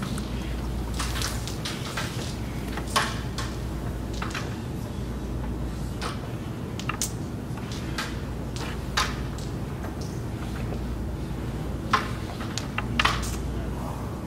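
A striker clicks sharply against wooden pieces on a board, again and again.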